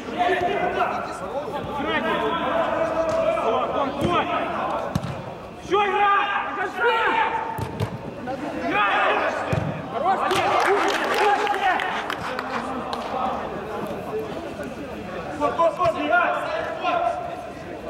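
Men shout to each other across a large echoing hall.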